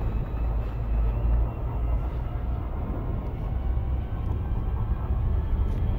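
A deep engine rumble hums steadily.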